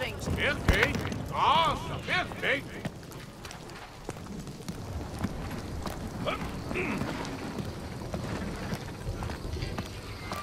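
Footsteps thud on a wooden log.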